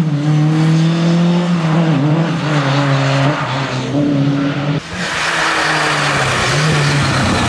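A rally car engine roars and revs hard as the car accelerates away.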